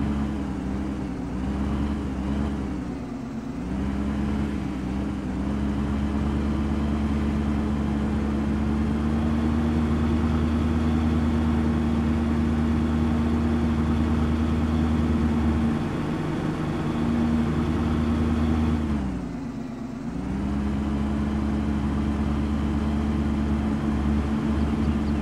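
A pickup truck's engine hums steadily, dipping in pitch now and then as it drives.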